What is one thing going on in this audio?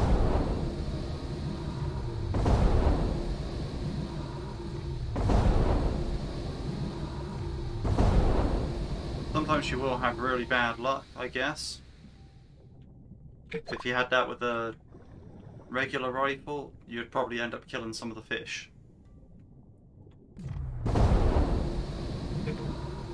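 Muffled underwater blasts burst again and again.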